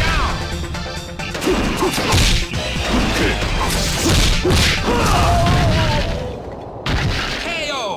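Punches and kicks land with heavy, rapid thuds.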